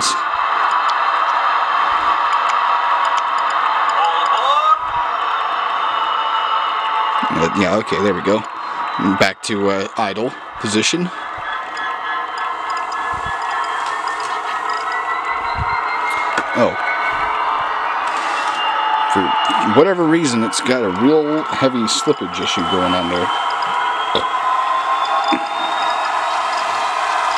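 A model train motor whirs steadily as the locomotive rolls along the track.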